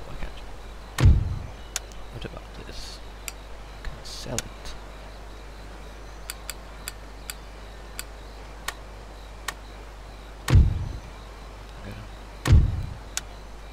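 Dull game menu thuds sound a few times.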